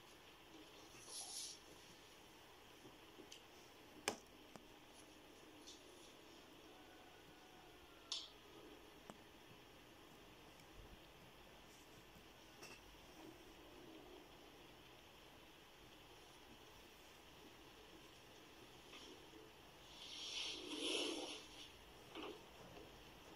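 Clothing rustles softly as an arm moves close by.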